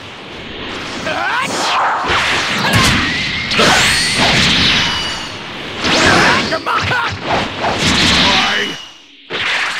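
Energy blasts whoosh and burst loudly in rapid succession.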